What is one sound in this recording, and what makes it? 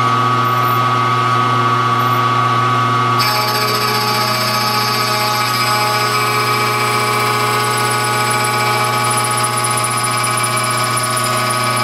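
A milling cutter grinds through metal with a steady high whine.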